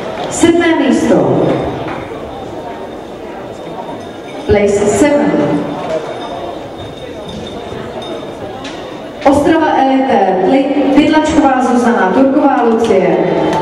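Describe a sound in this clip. A man announces loudly over a loudspeaker in a large echoing hall.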